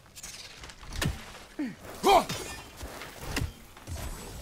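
An axe whooshes through the air and thuds.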